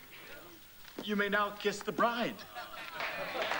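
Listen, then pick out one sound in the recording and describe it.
An elderly man cries out loudly.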